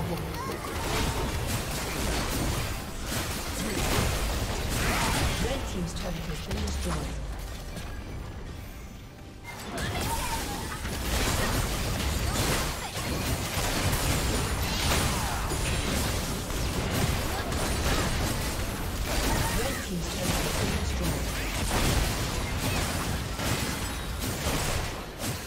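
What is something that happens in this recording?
Video game spell blasts and weapon clashes ring out in a busy battle.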